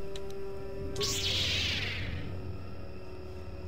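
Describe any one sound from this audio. A lightsaber ignites with a rising whoosh.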